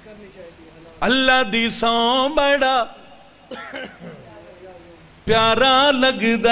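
A man recites loudly and passionately into a microphone, with echo.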